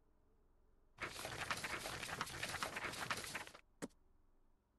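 Paper pages rustle and flip in a book.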